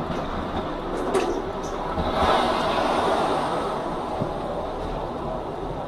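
A truck crashes and overturns, scraping along the road.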